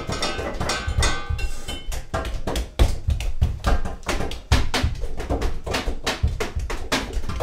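Dishes clatter in a sink.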